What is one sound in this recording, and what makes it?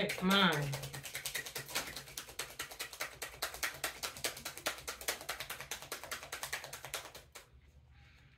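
Playing cards flutter and riffle rapidly as they are shuffled.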